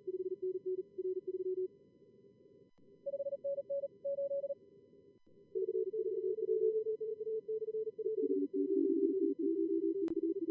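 Morse code tones beep in quick bursts at a few different pitches.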